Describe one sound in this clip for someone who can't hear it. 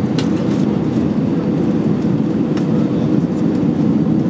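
A plane's wheels thud and rumble on touching down on a runway.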